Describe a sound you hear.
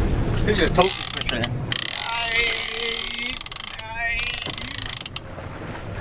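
A young man talks excitedly close by.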